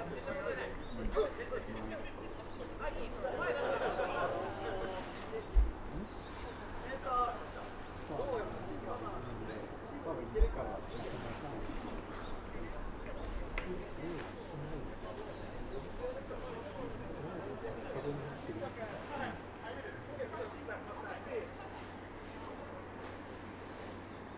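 Men call out to each other in the distance outdoors.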